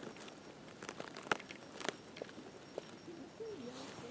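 Dry pine needles rustle and crackle as a mushroom is pulled from the ground.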